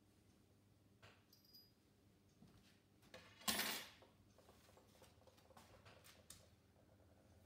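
Metal tools clink and clatter close by.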